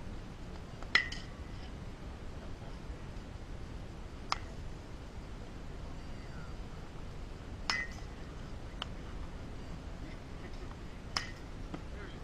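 A baseball smacks into a catcher's mitt several times.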